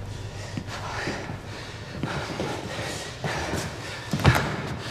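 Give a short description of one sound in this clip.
A man breathes heavily and raggedly close by.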